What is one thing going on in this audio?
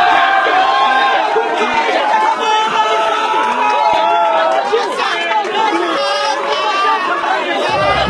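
Young men laugh nearby.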